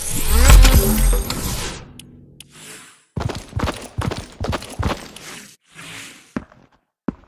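Upbeat electronic dance music plays with a thumping beat.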